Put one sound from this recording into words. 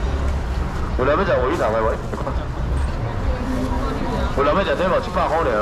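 A man calls out loudly nearby, hawking in a sing-song voice.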